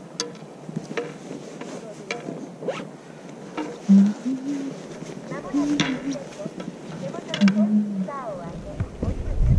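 Skis crunch and scrape over snow.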